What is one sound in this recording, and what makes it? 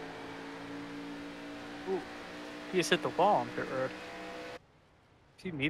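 A race car engine roars steadily.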